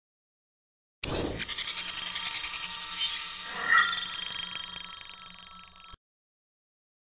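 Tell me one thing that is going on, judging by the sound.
Bright electronic chimes and swooshes play.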